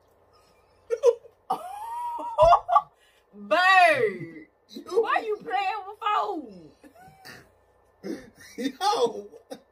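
A young woman shouts and laughs with animation.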